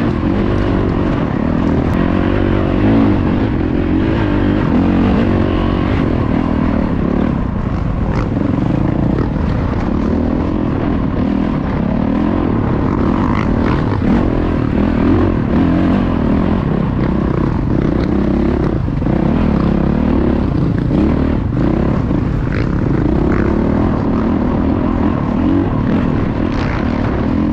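Tyres crunch and skid over loose dirt and rocks.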